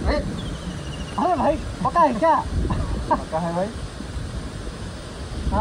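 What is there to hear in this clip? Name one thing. A second young man answers nearby.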